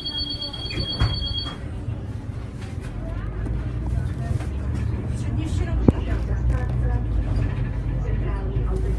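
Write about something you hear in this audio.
A bus engine hums steadily while driving along a street.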